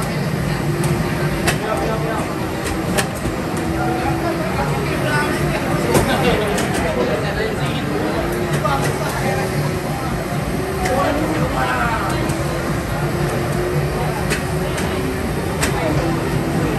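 Racing arcade games roar with engine sounds.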